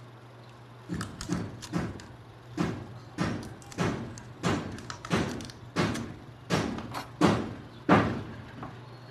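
Sharp knocks on metal ring out in a steady rhythm.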